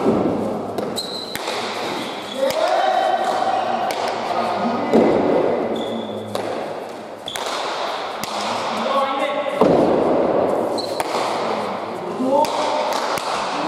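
Players' shoes squeak sharply on the floor.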